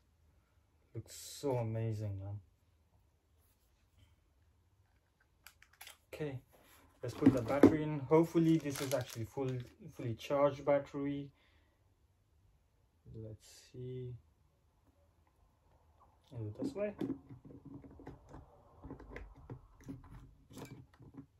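Packaging rustles as a small device is handled.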